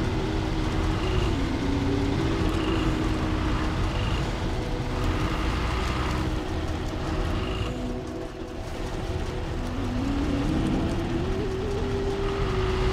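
Tyres crunch through snow.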